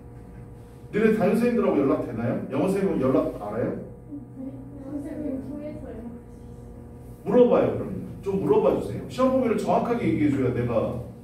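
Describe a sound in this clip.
A man speaks calmly, heard through a microphone.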